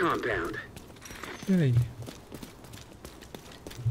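Footsteps tap lightly on stone steps.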